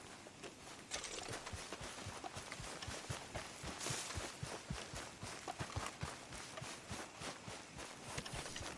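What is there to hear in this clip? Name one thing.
Quick running footsteps thud on grass.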